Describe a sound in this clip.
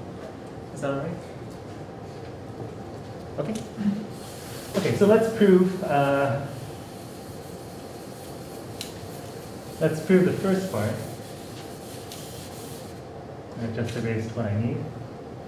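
A man speaks calmly in a lecturing tone.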